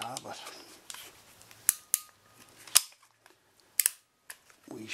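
A pipe cutter snaps shut with sharp clicks.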